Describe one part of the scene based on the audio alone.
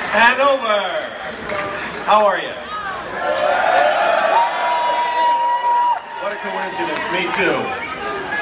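A large crowd cheers and shouts loudly in a big echoing tent.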